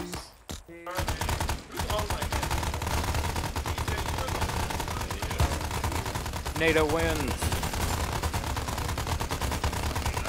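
A machine gun fires rapidly and steadily.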